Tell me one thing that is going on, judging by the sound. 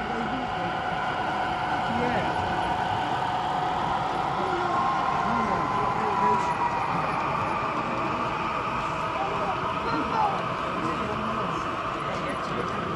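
A small electric model train motor hums steadily as it runs along the track.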